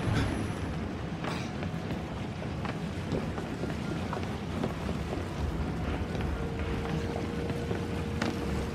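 Footsteps thud on wooden planks as a man runs.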